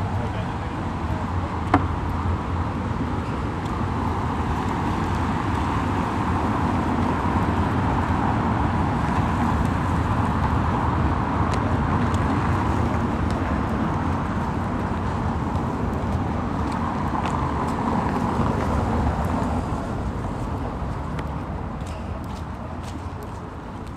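Traffic rumbles past on a city street at night.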